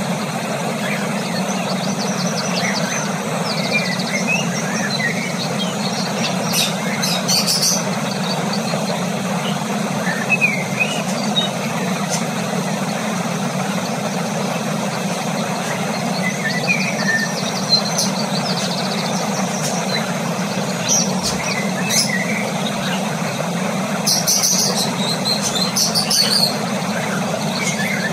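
A cockatiel chirps softly.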